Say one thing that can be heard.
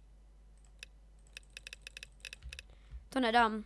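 Quick soft clicks sound as items are picked in a game menu.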